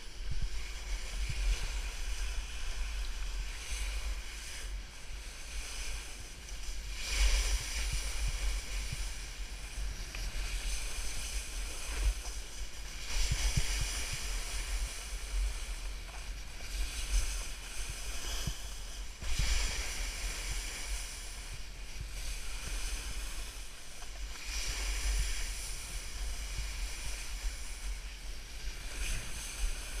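Wind rumbles against a nearby microphone.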